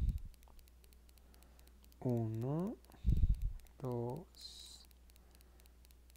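Yarn rustles softly as a crochet hook pulls loops through it.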